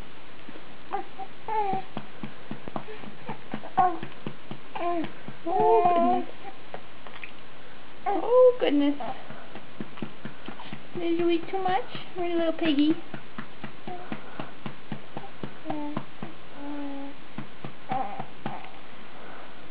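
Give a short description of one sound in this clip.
A baby coos and babbles softly nearby.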